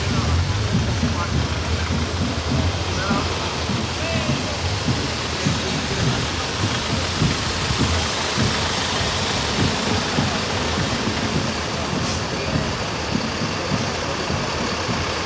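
Heavy trucks rumble past on a road, one after another.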